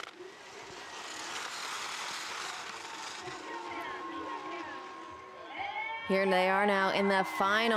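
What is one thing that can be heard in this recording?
Skis hiss and scrape over hard snow as racers speed downhill.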